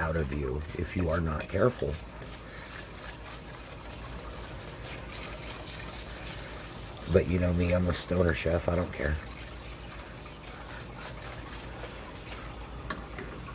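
A wire whisk stirs liquid in a metal pan.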